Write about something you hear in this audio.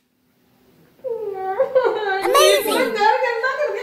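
A child cries out and whines.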